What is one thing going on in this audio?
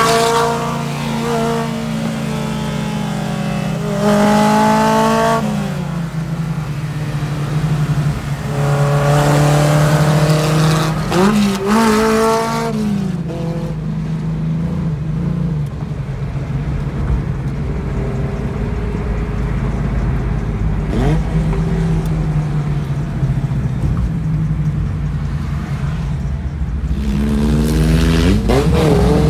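A loud car engine roars and revs up and down nearby.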